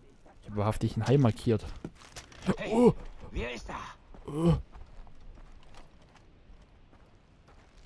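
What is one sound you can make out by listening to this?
Footsteps crunch softly on gravel.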